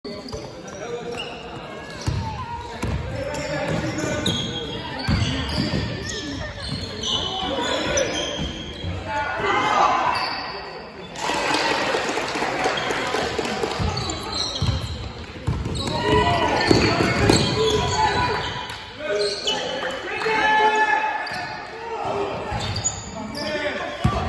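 Teenage boys shout to each other in an echoing sports hall.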